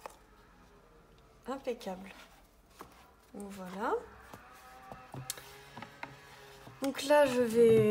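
Stiff paper card rustles as it is folded open.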